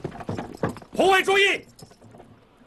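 A man shouts out loudly.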